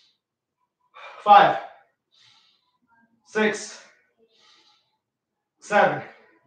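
A man grunts and exhales hard with effort, close by.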